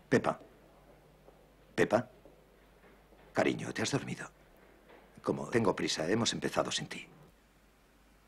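A man speaks on a telephone in a low voice.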